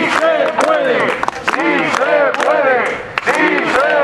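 A man shouts through a megaphone.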